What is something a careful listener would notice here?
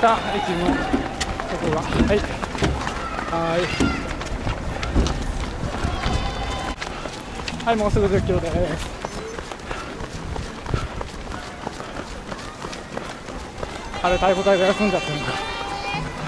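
A crowd of spectators cheers and calls out along the roadside.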